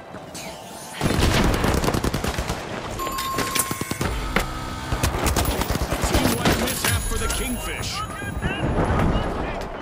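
A gun fires in rapid bursts close by.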